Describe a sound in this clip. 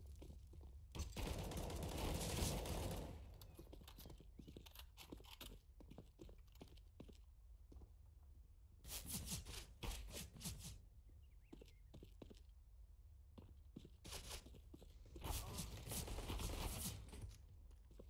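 Rifles fire in rapid, loud bursts.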